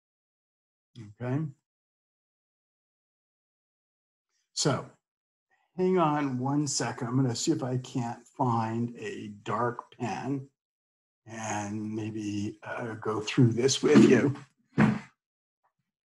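An elderly man speaks calmly through an online call.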